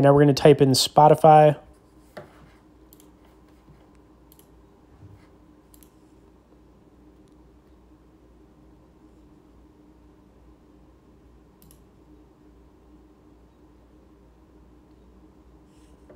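Small plastic buttons click softly under thumbs.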